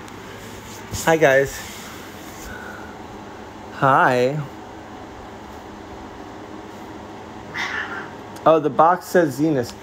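A cat meows loudly several times, close by.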